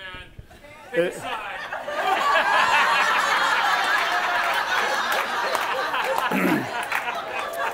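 A crowd cheers and chatters loudly.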